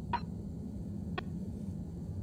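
A short electronic click sounds as a menu selection changes.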